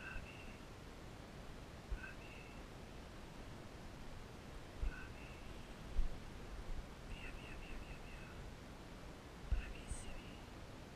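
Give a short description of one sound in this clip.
Dogs rustle through tall dry grass.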